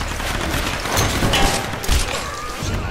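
An explosion booms and roars.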